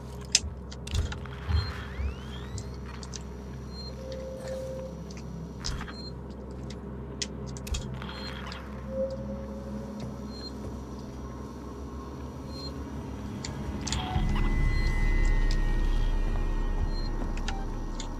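A motion tracker beeps in short, regular pips.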